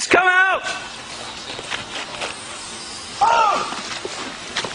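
Men shout commands outdoors.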